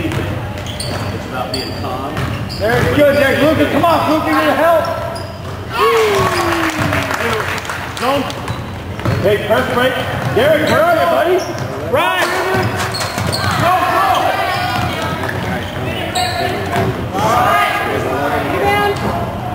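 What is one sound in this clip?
Sneakers squeak sharply on a hard floor in an echoing gym.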